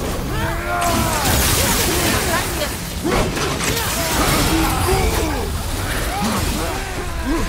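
Ice magic bursts with a sharp crackle.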